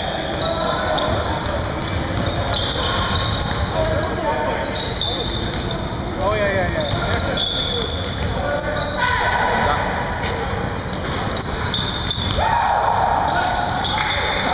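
Sneakers squeak sharply on a hardwood court, echoing in a large hall.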